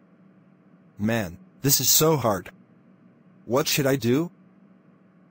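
A man with a deep voice speaks in a puzzled, weary tone.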